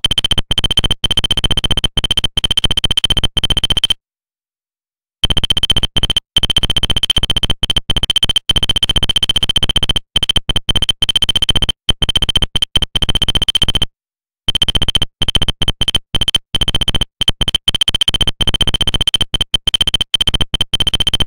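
Rapid high electronic blips chatter in quick bursts as text types out.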